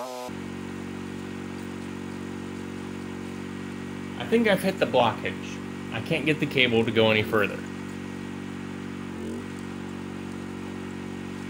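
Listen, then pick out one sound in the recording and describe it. A drain cleaning machine's motor hums steadily.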